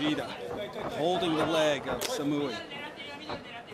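A kick lands on a fighter's body with a sharp slap.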